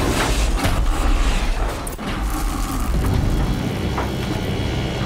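A huge machine rumbles with a deep, heavy drone.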